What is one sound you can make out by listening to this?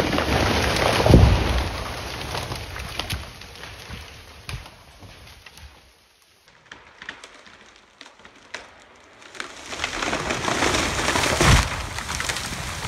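A falling tree crashes heavily to the ground with a deep thud.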